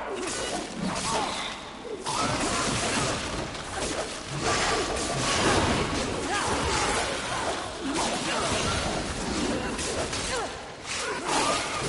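Heavy blows strike a snarling creature with thuds.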